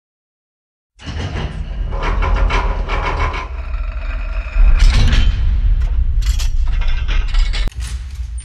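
A heavy metal vault door mechanism clanks and grinds.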